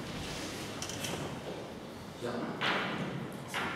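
A man rummages through items on a desk.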